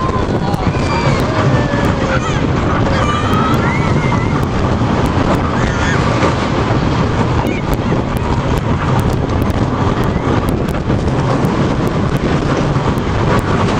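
Wind rushes hard past the riders.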